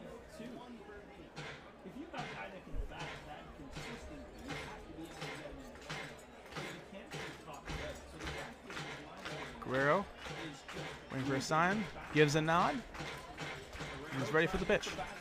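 A crowd murmurs in the stands outdoors.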